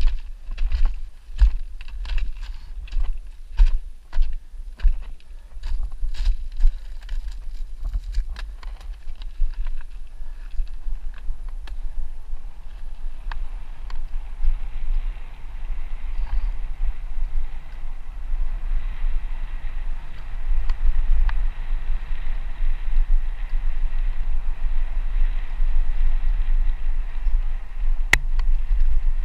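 Wind rumbles against a microphone while riding.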